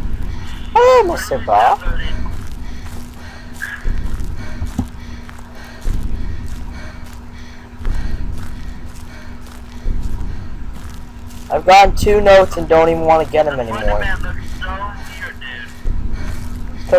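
Slow footsteps crunch on forest ground.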